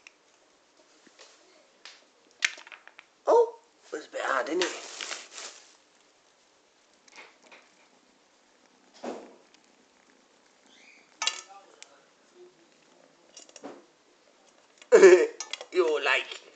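A cat crunches dry food from a metal bowl.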